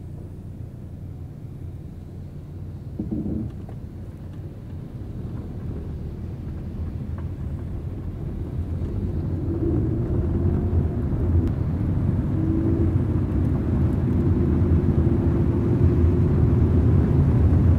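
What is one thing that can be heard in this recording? A car engine hums steadily from inside and grows louder as the car speeds up.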